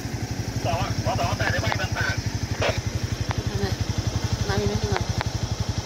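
A pickup truck engine idles with a steady throbbing rumble.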